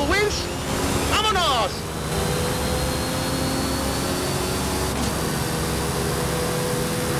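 A sports car engine roars steadily at high speed, with quick rising revs between gear changes.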